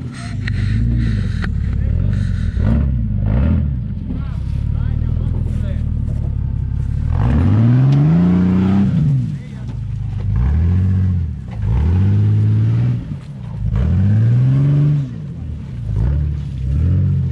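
Rocks knock and clatter under tyres.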